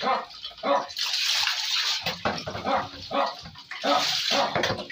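Water splashes as it is poured over a dog.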